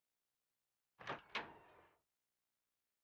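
A heavy double door creaks open.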